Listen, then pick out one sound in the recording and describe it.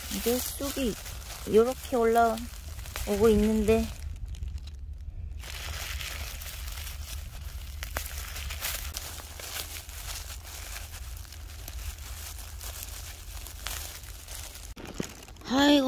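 Dry grass and leaves rustle as a hand picks plants close by.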